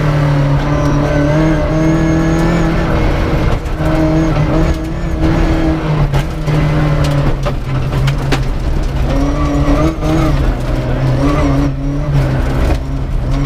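A man reads out pace notes rapidly.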